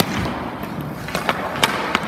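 A hockey puck slides across ice.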